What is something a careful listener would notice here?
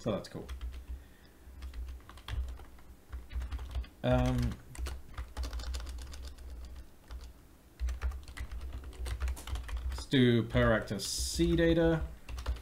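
Keyboard keys clatter in quick bursts.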